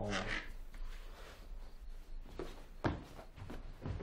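A young man climbs onto a wooden ledge with soft knocks and thumps.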